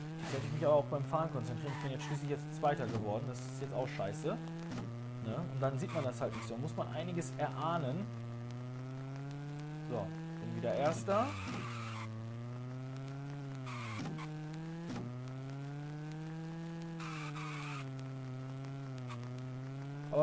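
A game car engine drones steadily, rising and falling in pitch as it speeds up and shifts gears.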